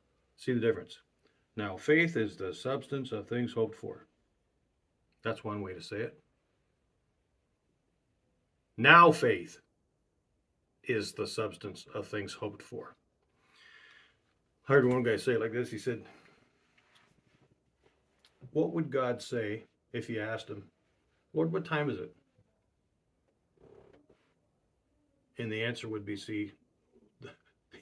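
A middle-aged man speaks calmly in bursts with pauses, close to a microphone.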